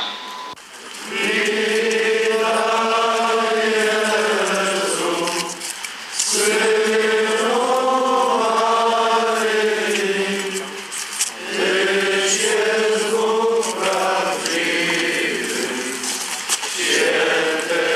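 A crowd sings a slow hymn together.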